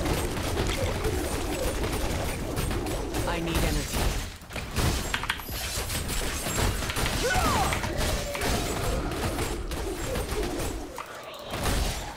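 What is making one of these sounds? Magic blasts and crackles in a hectic video game battle.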